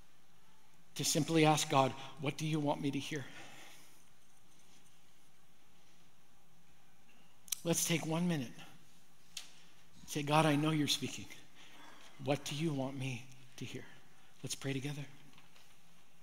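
A middle-aged man speaks slowly and earnestly into a microphone, with long pauses.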